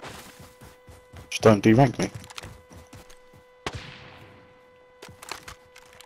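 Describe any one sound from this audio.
A rifle clicks and rattles as it is handled.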